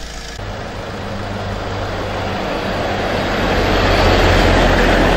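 Truck tyres roll on asphalt.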